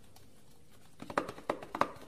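A cardboard box taps and rattles in hands.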